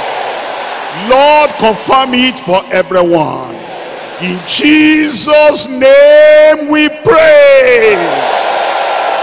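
A man shouts loudly and passionately.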